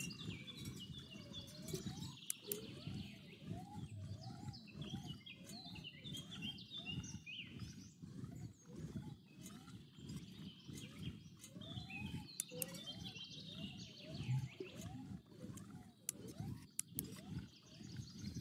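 A fishing reel whirs in a steady rhythm as it is cranked.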